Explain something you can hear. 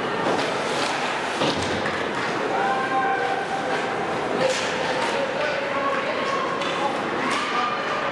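Ice skates scrape and hiss across the ice in a large echoing rink.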